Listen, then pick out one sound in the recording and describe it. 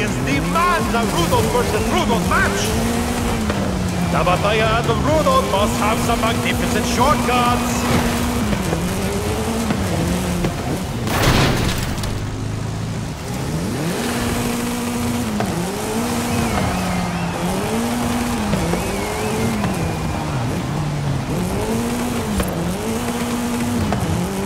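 A car engine revs up and down repeatedly through gear changes.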